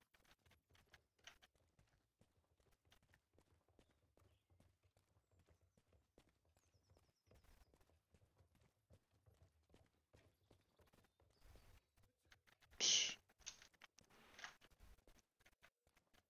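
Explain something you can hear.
A horse's hooves clop softly on a dirt track.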